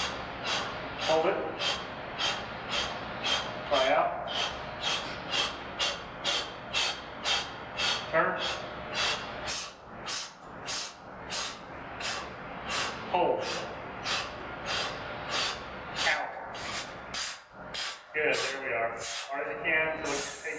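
A man speaks with encouragement nearby.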